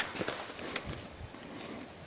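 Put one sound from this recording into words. A wire cage trap rattles as it is handled.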